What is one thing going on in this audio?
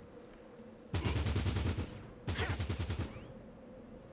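A gun fires two short bursts.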